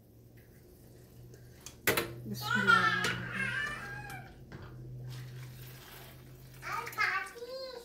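Water pours and splashes into a pot of broth.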